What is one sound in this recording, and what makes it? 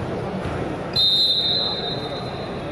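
A referee's whistle blows a short, sharp blast.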